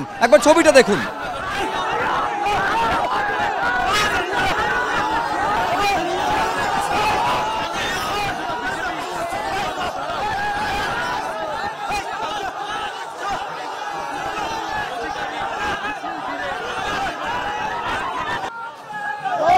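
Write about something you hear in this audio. A large crowd chants and shouts outdoors.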